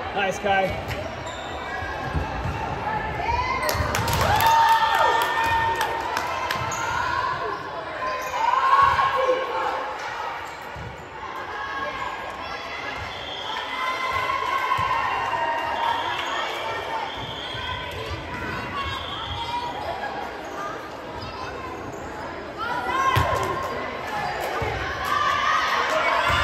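Sneakers squeak on a wooden gym floor.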